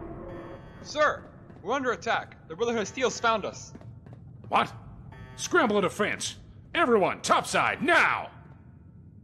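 A man shouts urgent orders close by.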